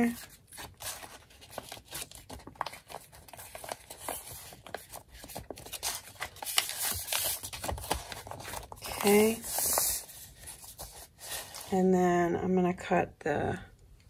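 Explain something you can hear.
Paper rustles and crinkles as it is folded and pressed flat.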